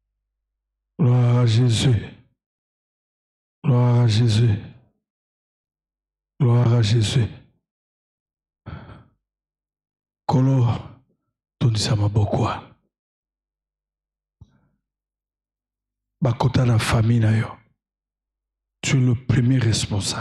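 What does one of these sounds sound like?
A man preaches with animation into a microphone in bursts, pausing between phrases.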